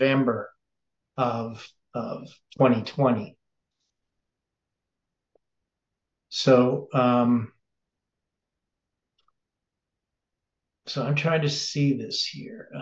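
An older man speaks calmly and closely into a microphone, in short phrases with pauses.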